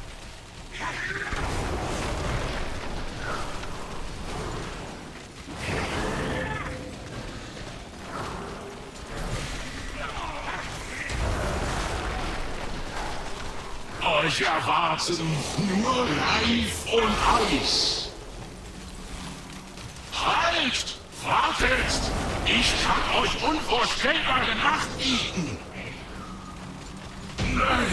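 Magic spells whoosh and crackle in a game battle.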